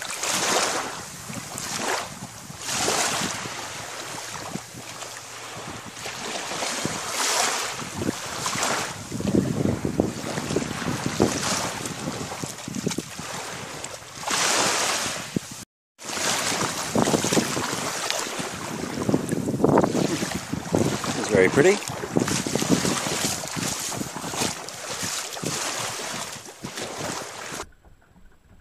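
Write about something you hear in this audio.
Small waves lap and wash gently onto a sandy shore.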